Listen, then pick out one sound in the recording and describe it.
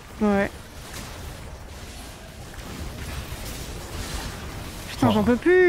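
Video game spell effects whoosh and crackle.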